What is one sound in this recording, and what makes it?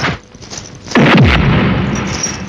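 A body thumps onto the dusty ground.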